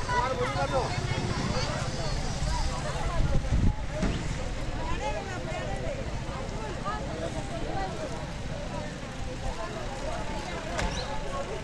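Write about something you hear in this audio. A crowd of women and men chatter nearby outdoors.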